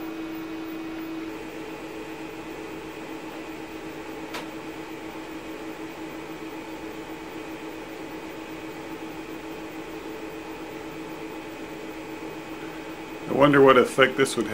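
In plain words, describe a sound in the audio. An electrical discharge hums steadily.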